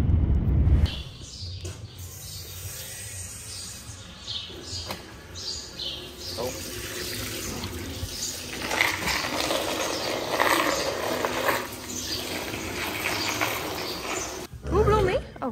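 Water from a hose splashes onto the ground and into buckets.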